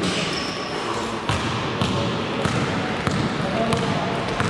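A basketball bounces on the floor with dull thuds.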